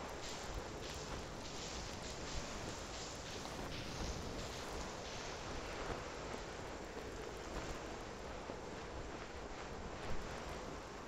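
Sand hisses steadily as bodies slide down a slope.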